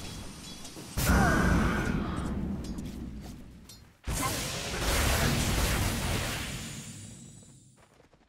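Magic spell effects whoosh and blast in bursts.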